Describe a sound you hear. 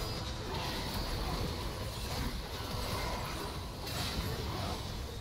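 Game spell effects crackle and blast in quick succession.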